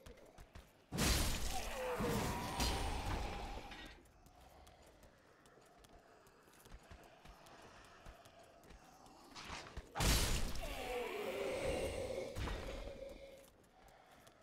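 A heavy sword swings and strikes with loud clashing blows.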